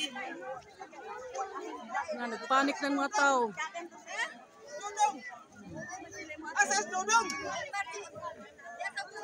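A crowd of men and women shout and talk excitedly close by.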